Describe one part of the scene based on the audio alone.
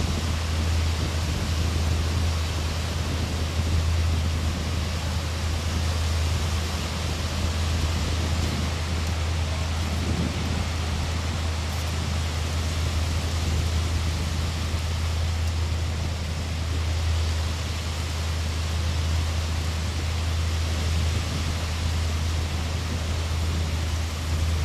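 Waves wash against the shore.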